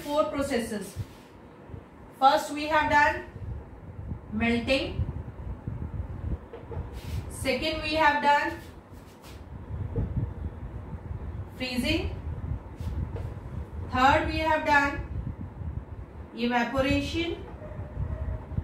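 A young woman speaks calmly, in short phrases, close by.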